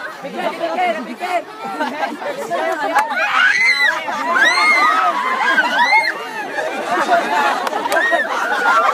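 A crowd of young people talks and shouts excitedly outdoors.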